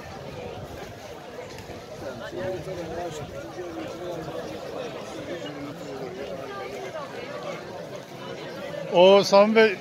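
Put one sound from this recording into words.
A large outdoor crowd murmurs and talks softly.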